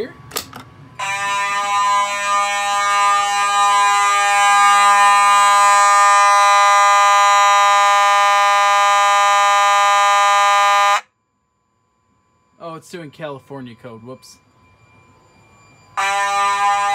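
A fire alarm horn blares loudly and steadily.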